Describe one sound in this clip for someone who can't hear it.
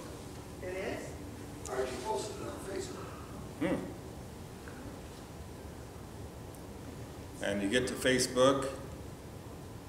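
An older man speaks calmly and slowly through a microphone.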